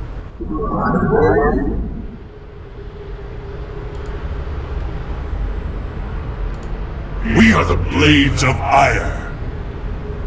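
A young man talks into a microphone in short bursts.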